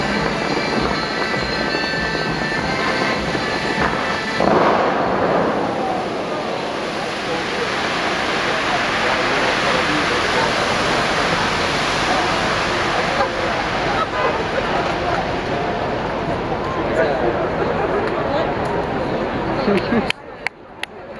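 Tall fountain jets of water roar and hiss, with spray falling onto water.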